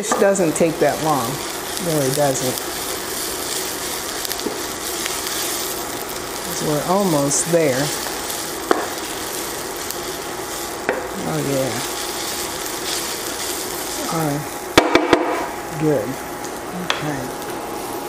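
A wooden spatula scrapes and taps against a pan.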